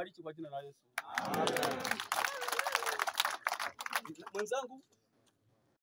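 A crowd shouts and cheers outdoors.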